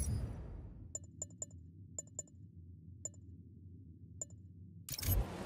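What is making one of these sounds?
Soft menu clicks tick a few times.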